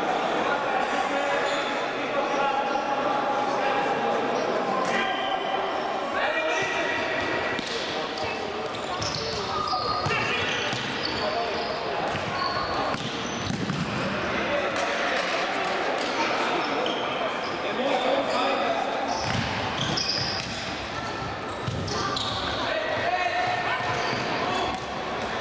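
Sneakers squeak sharply on a hard indoor floor.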